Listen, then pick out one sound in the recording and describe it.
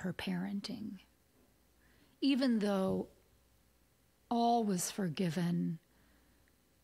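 A woman speaks calmly and expressively into a close microphone, heard over an online call.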